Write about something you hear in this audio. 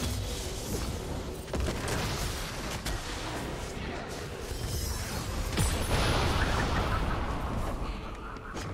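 Game spell effects burst and crackle in a busy battle.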